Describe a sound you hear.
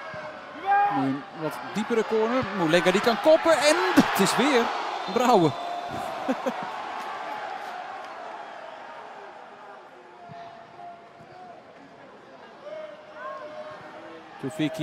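A large stadium crowd roars loudly and then dies down to a murmur.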